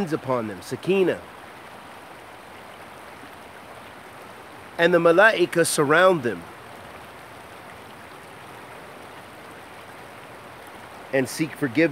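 A shallow stream rushes steadily over stones.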